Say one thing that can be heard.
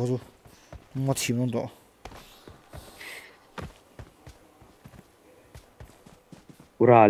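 Footsteps patter quickly over dirt and grass.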